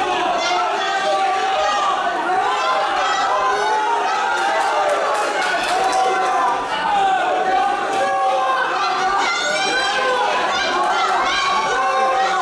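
Gloves thud against bodies as two fighters exchange punches and kicks.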